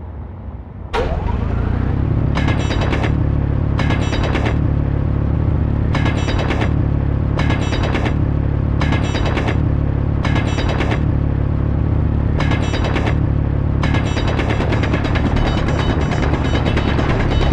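A power drill hums with a steady low drone.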